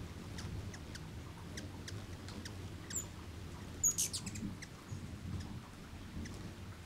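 Hummingbirds chirp with short, high squeaks.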